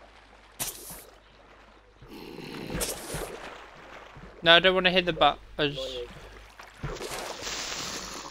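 Lava bubbles and pops nearby.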